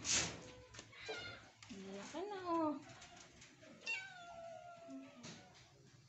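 Kittens meow in high, plaintive cries.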